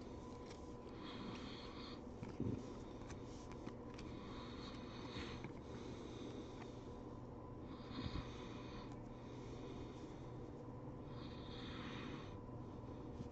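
Glossy trading cards slide against each other as they are flipped through.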